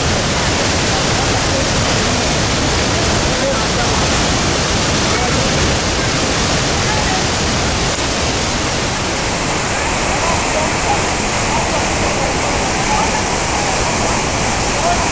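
A waterfall roars steadily, with water crashing into a pool.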